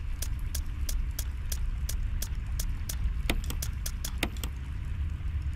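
Short electronic menu clicks tick in quick succession as a list scrolls, then stop.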